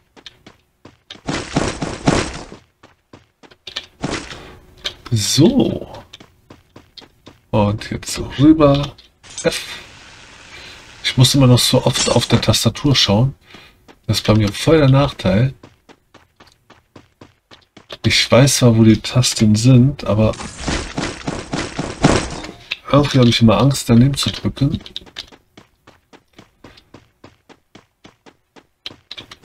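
Quick footsteps patter steadily on the ground.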